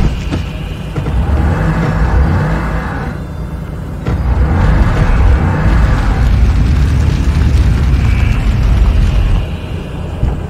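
A small pickup truck's engine runs as it drives.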